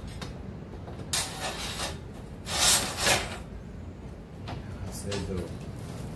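Metal rods scrape and clink against a metal pipe.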